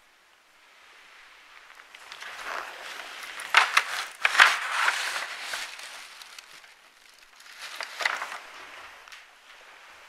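A large sheet of paper rustles and crinkles as it is handled close by.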